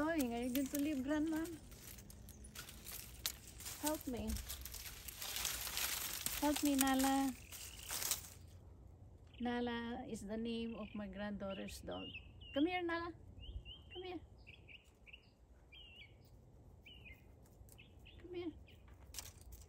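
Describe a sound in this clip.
A middle-aged woman talks calmly close by, outdoors.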